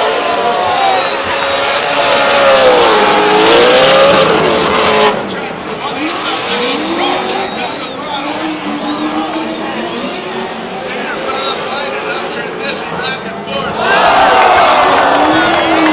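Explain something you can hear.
Race car engines rev hard and whine up and down.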